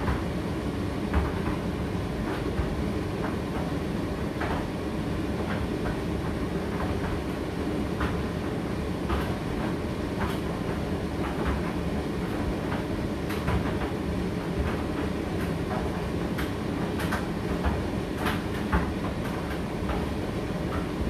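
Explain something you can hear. A condenser tumble dryer hums and rumbles as its drum turns.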